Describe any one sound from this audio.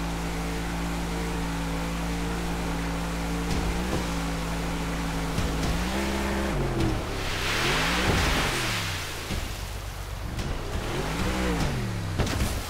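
A speedboat engine drones steadily, rising and falling in pitch.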